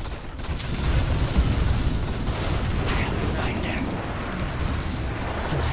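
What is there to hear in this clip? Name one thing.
Fantasy battle sound effects clash and crackle loudly.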